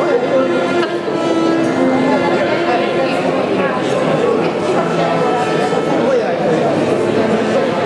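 A piano plays along softly.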